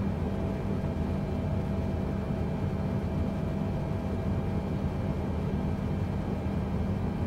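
Jet engines drone steadily in a low rumble.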